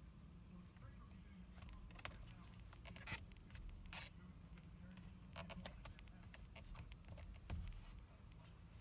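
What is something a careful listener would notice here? Thread rustles and creaks as it is pulled through leather.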